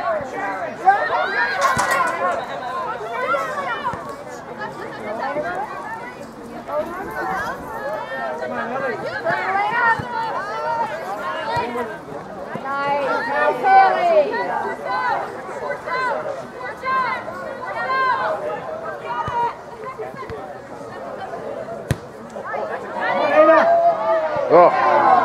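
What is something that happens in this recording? Spectators shout and cheer with excitement close by, outdoors.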